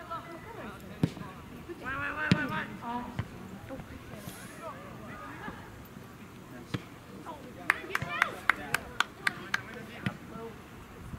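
A soccer ball thumps off a player's foot.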